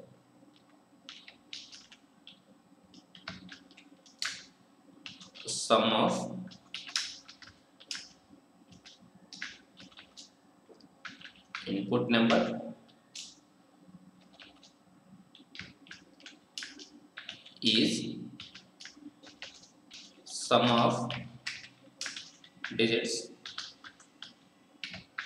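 Computer keys click in quick, light taps.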